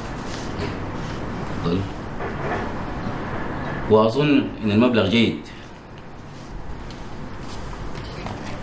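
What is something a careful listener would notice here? Paper rustles as pages are leafed through.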